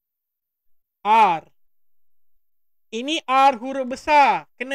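A man speaks close to a microphone, slowly and clearly, as if teaching.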